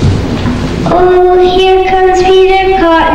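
A young girl sings through a microphone.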